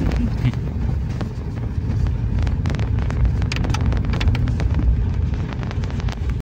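A vehicle rumbles steadily over a bumpy dirt road.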